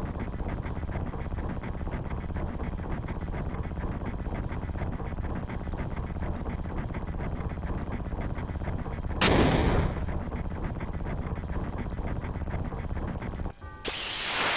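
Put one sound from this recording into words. A vehicle rumbles steadily in a video game.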